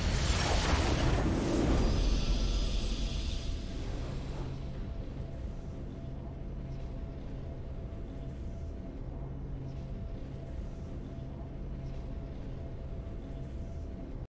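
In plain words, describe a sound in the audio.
A triumphant fanfare swells and then settles into calm music.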